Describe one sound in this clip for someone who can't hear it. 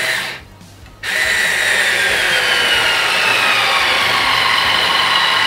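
A cordless drill whirs steadily as it drives a screw into wood.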